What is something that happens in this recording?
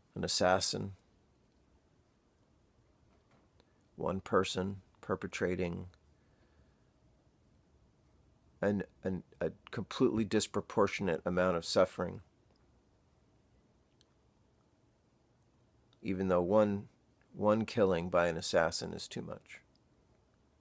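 A man speaks calmly close to the microphone, in short bursts with pauses.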